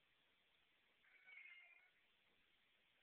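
A cat meows briefly.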